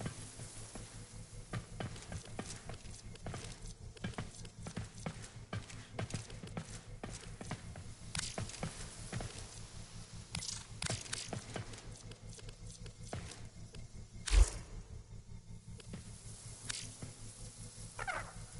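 Soft menu clicks tick rapidly, one after another.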